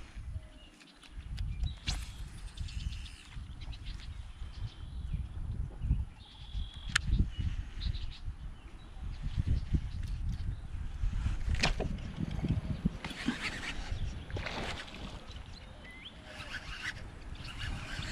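Wind blows across open water, rumbling in the microphone.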